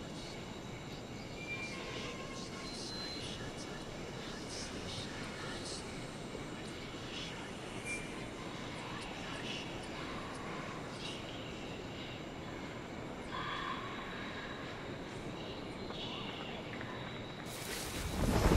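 Leaves rustle as someone creeps through dense bushes.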